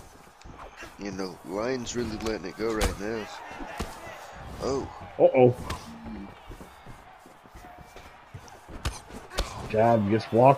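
Punches land with dull thuds.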